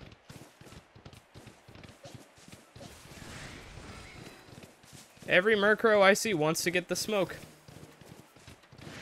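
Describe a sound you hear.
Hooves patter quickly on grass.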